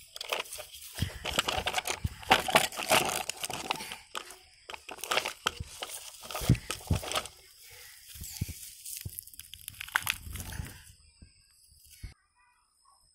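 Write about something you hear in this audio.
Plastic toy wheels scrape and rattle over dirt.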